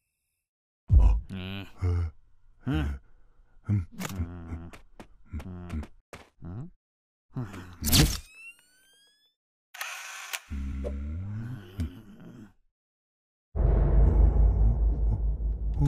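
A cartoon creature speaks in a deep, bumbling voice.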